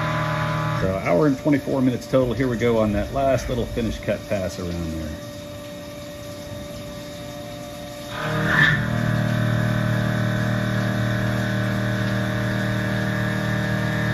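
Coolant sprays and splashes against metal.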